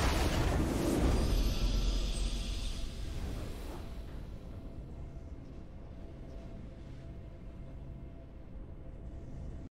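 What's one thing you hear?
A triumphant fanfare rings out.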